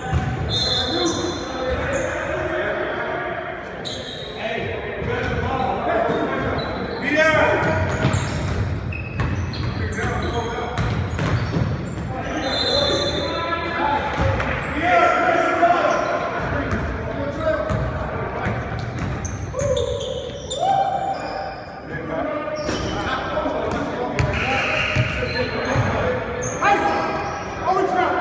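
Young men shout to each other across the gym.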